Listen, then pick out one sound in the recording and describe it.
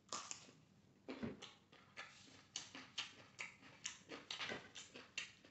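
A man chews food loudly close up.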